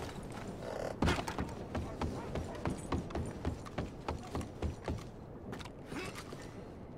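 Boots thump on wooden boards at a quick pace.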